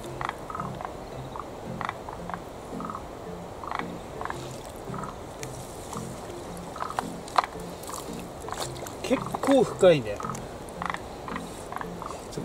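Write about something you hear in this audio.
Hands slosh and splash in shallow water.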